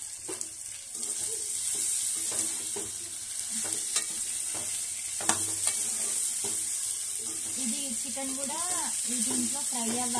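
A metal spoon scrapes and clanks against a pot while stirring.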